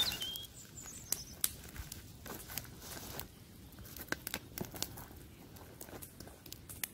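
A small campfire crackles and pops steadily outdoors.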